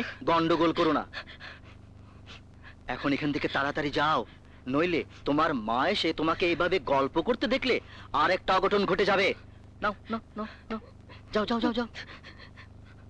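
A middle-aged man speaks emphatically up close.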